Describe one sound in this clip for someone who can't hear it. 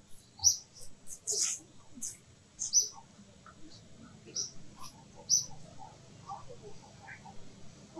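Leaves and branches rustle softly as monkeys shift about in a tree.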